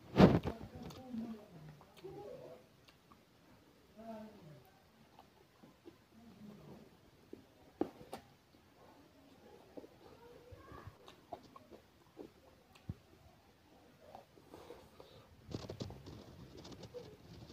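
A man chews and slurps food noisily up close.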